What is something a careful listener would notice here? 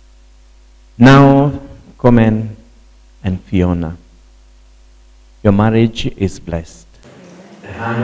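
An elderly man speaks with animation through a microphone, with short pauses.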